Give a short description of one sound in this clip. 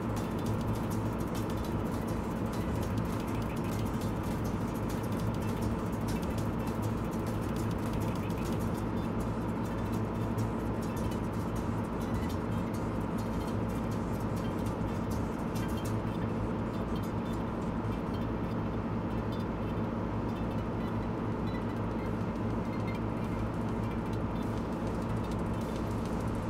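Tyres roll over a road with a steady rumble.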